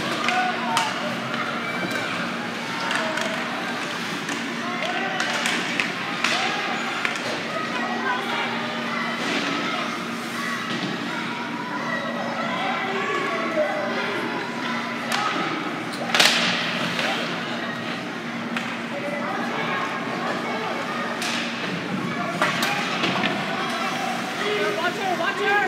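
Hockey sticks clack and pucks bang against the boards.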